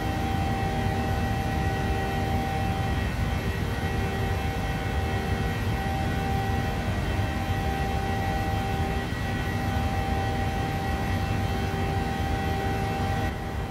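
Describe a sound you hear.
A jet engine roars and whines steadily close by, heard from inside an aircraft cabin.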